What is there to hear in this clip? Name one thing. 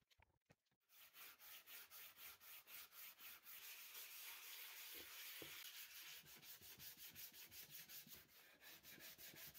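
Sandpaper rubs back and forth over wood in quick strokes.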